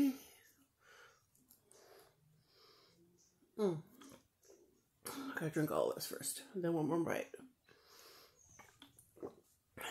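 A woman gulps a drink.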